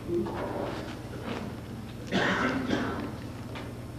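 A woman speaks through a microphone in a large room.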